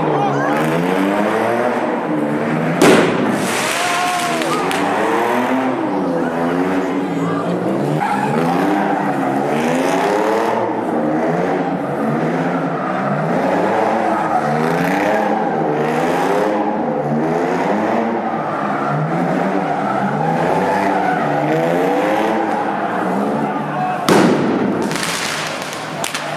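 Tyres screech on pavement.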